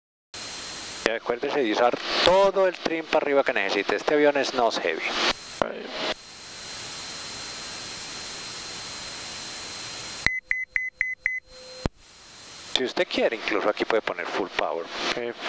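A man talks calmly over a headset intercom.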